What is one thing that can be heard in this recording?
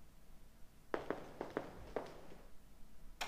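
Footsteps hurry across a hard floor.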